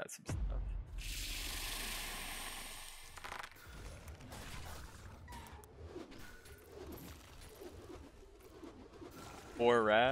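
Game battle effects clash and crackle.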